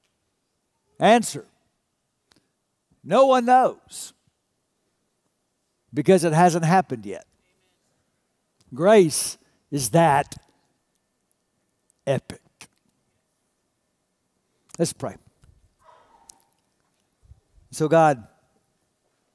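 A middle-aged man speaks with animation through a microphone, pausing often.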